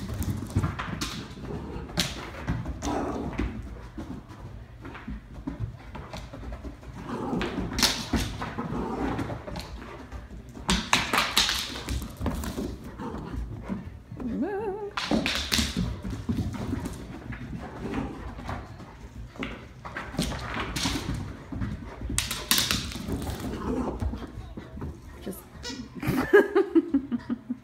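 Dog paws patter and scrabble on a hard floor.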